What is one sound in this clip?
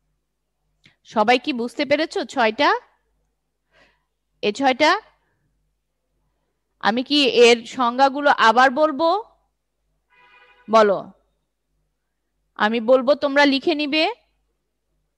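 A young woman speaks calmly and clearly into a close microphone, with pauses.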